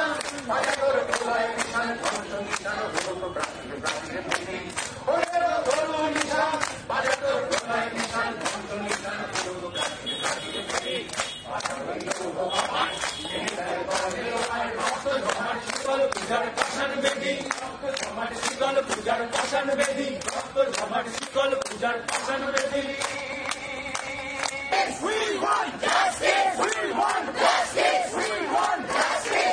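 A crowd sings and chants loudly together.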